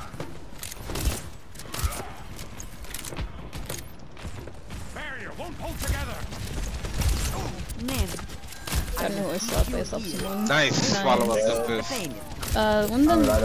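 A rifle fires sharp shots in quick bursts.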